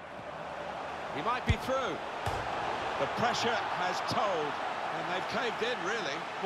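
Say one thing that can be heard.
A stadium crowd cheers louder after a goal.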